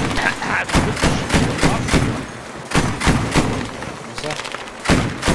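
A heavy gun fires loud shots in a steady rhythm.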